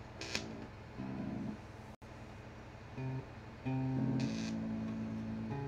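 An electric bass guitar plays low notes.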